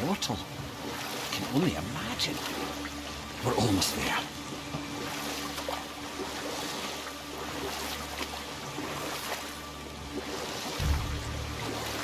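Oars splash and paddle through water.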